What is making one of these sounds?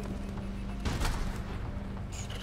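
A blast goes off with a loud boom.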